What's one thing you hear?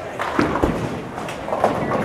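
A bowling ball rolls down a neighbouring lane.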